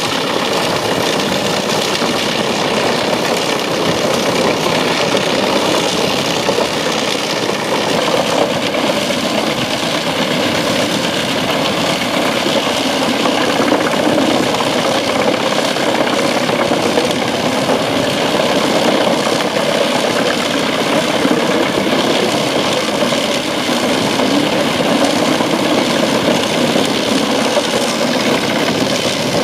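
A wood chipper roars loudly and steadily.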